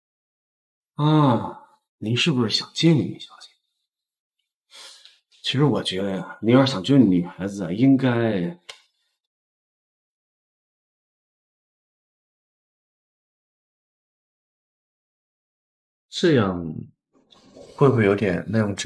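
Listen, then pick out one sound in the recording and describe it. Another young man speaks calmly and teasingly, close by.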